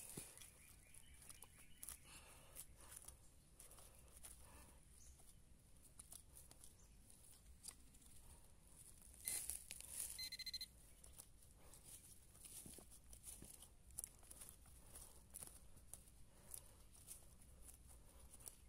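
A small tool scrapes and pokes at dry, crumbly soil.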